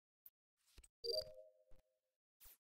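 A short chime sounds as a card swipe is accepted.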